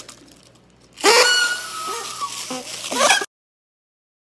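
A man and a woman blow party noisemakers loudly through an online call.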